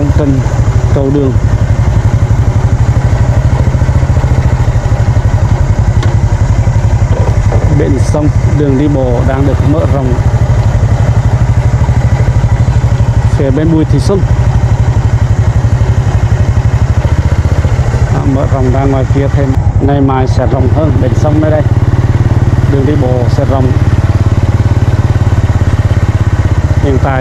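A small motorbike engine putters steadily close by.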